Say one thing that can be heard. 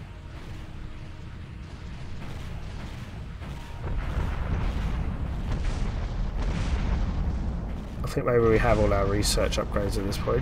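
Spaceship weapons fire in rapid bursts with low rumbling blasts.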